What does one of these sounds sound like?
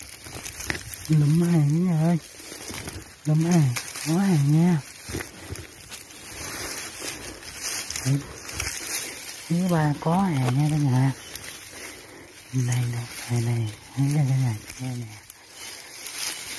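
A hand rustles through dry grass and leaves.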